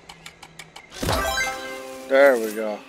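A bright chime rings out with a burst of sparkle.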